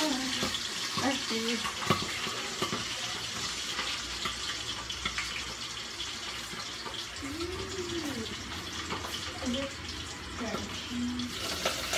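Metal tongs and a pot lid clink and clatter.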